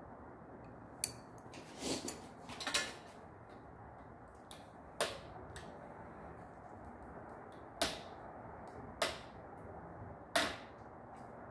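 Metal tools click and clank against a bicycle part.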